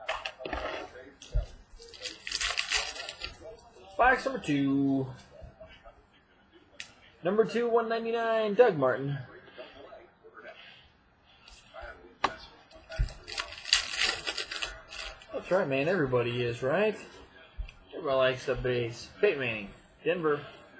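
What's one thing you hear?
Trading cards rustle and slide as they are handled.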